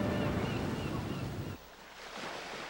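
Stormy waves roar and crash.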